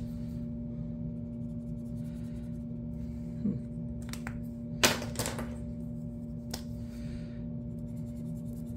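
A pen tip scratches softly on paper.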